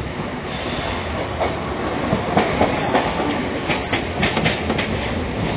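An electric local train rumbles along at speed, heard through an open door.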